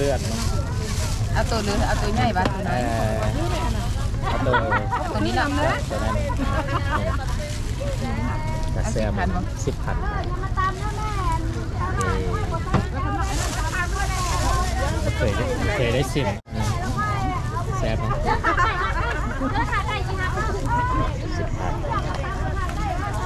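Several adults chatter and call out around a busy open-air market.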